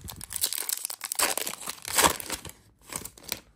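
A plastic wrapper crinkles and rustles as hands tear it open.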